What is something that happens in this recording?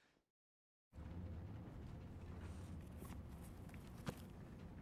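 Paper rustles as hands handle a book.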